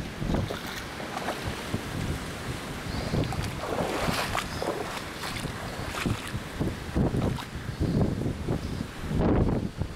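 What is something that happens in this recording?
Boots splash through shallow water.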